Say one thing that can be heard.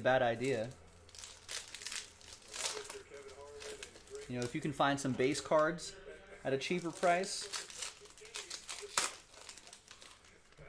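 A foil card wrapper crinkles as hands tear it open.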